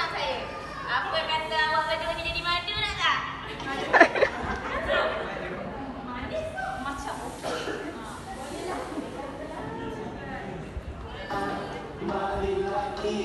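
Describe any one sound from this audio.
A woman sings a tune loudly.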